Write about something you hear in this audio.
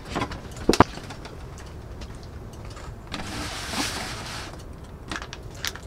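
A cardboard box rustles as hands open it.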